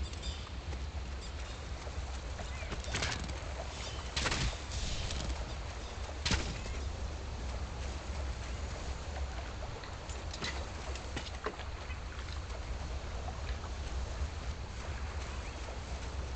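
A game character splashes through water.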